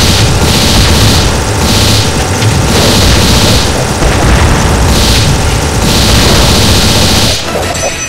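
Explosions boom against an armoured vehicle.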